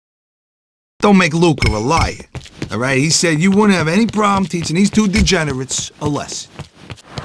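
A man speaks with animation nearby.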